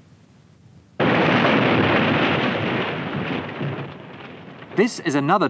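A car crashes into a barrier with a loud bang.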